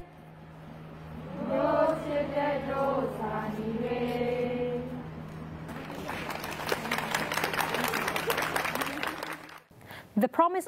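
A crowd sings together outdoors.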